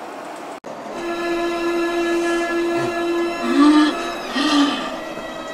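A man lets out a long, drawn-out groan.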